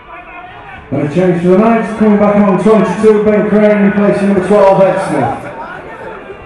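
A man shouts loudly across the field.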